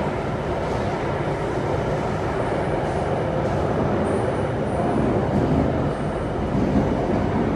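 A subway train rumbles loudly as it travels along the track.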